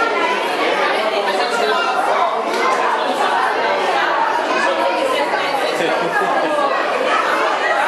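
A young woman speaks warmly to a little girl, close to a microphone.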